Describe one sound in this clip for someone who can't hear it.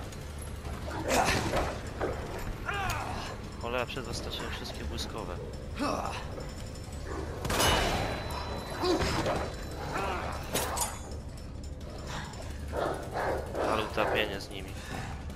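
Dogs snarl and growl viciously.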